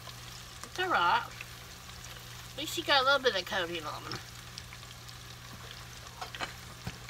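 Oil sizzles and bubbles steadily.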